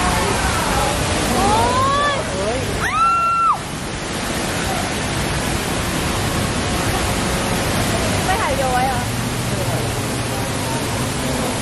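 Heavy water crashes and splashes loudly, with a steady roar.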